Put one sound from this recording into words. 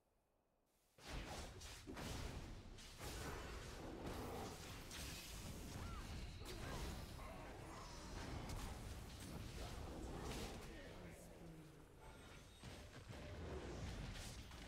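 Game combat sounds of spells and hits crash and burst rapidly.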